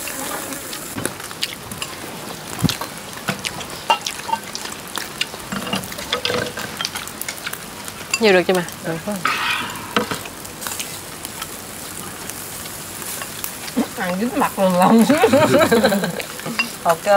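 Meat sizzles on a charcoal grill.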